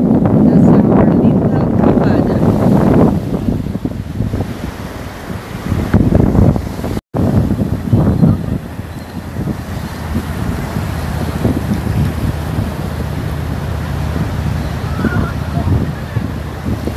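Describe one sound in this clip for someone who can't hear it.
Waves wash and break steadily on the shore.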